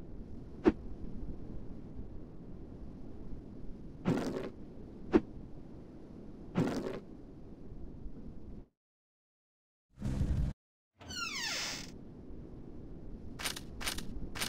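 Short electronic clicks and swishes sound as a game menu is switched.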